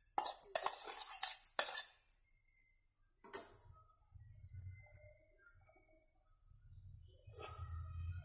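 A metal pot clinks and scrapes against another metal pot.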